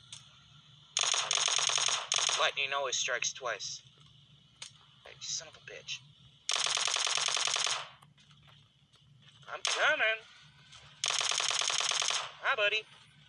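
An automatic rifle fires in long rapid bursts.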